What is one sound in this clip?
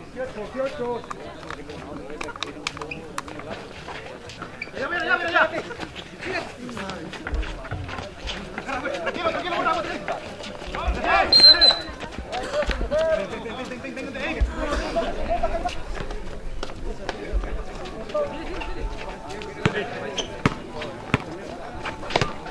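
A basketball bounces on a concrete court.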